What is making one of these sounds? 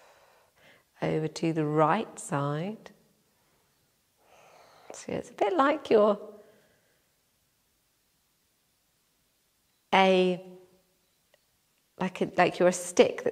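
A woman speaks calmly and softly, close by, with pauses.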